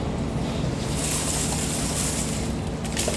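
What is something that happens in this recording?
Ice rattles as it is scooped and poured.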